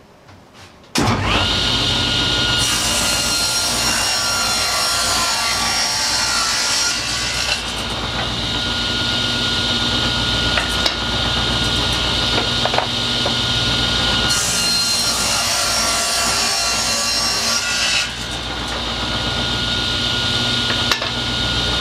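A table saw whirs loudly and cuts through wood.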